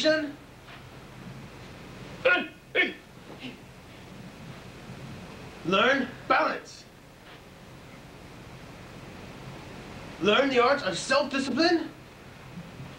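A man calls out short, loud commands.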